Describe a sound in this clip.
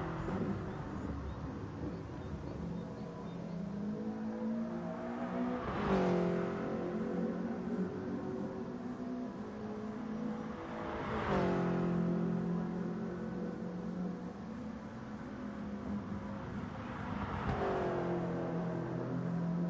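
A racing car engine roars steadily, rising in pitch and dropping at each gear change.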